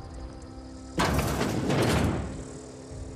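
A heavy door creaks and swings open.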